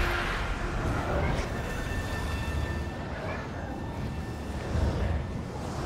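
Flames roar steadily.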